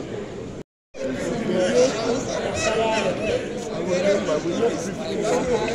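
Men talk nearby in the crowd.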